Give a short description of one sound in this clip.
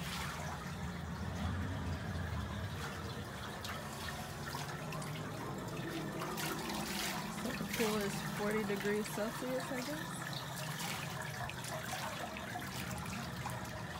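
Pool water laps gently.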